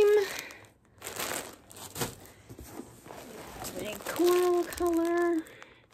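A plastic bag crinkles as it is handled.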